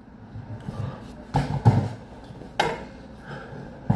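A chair scrapes and knocks as it is lifted.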